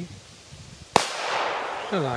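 A firecracker bangs sharply outdoors.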